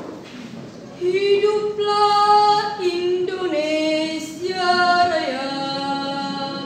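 A group of people sings together slowly.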